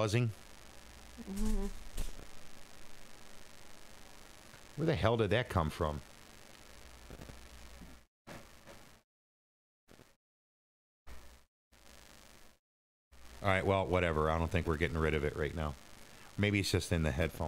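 A man speaks casually into a close microphone, in short bursts with pauses.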